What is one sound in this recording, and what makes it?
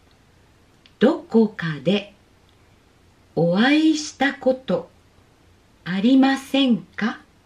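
A woman speaks clearly and slowly into a close microphone, pausing between phrases.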